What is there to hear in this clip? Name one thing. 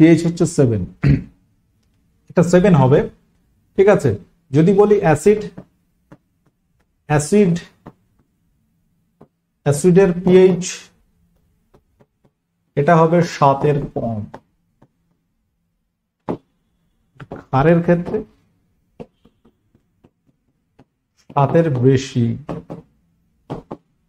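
A man speaks clearly into a close microphone, explaining in short bursts with pauses.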